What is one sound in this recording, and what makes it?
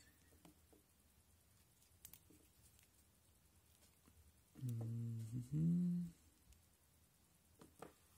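Small plastic parts of a phone click as they are handled.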